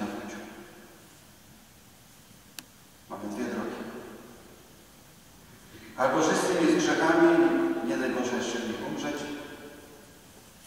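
A middle-aged man preaches calmly through a microphone in a large echoing hall, pausing between phrases.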